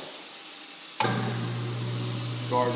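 A garbage disposal motor starts and hums steadily.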